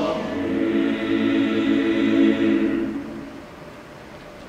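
A large choir sings in harmony in an echoing hall.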